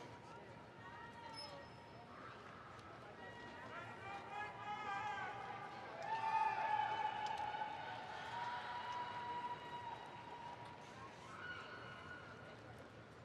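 A marching band plays brass chords that swell and fade, echoing through a large stadium.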